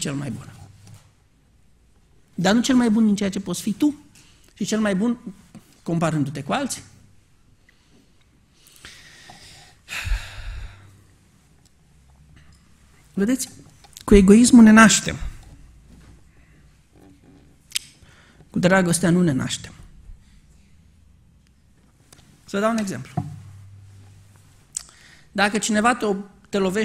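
A man speaks calmly through a microphone in a large echoing hall, with long pauses between phrases.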